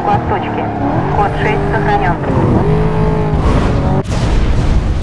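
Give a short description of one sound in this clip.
A racing car engine roars at high speed and revs up and down.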